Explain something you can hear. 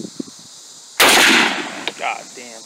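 A shotgun fires a single loud blast outdoors.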